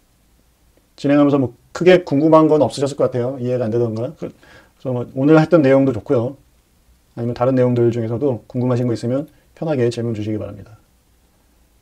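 A man speaks calmly and closely into a microphone, with pauses.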